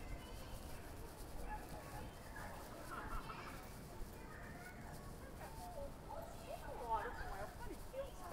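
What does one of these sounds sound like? Traffic rumbles low and steady outdoors.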